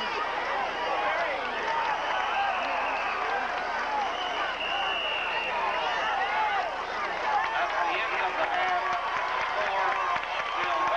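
A large crowd cheers and shouts loudly in an open stadium.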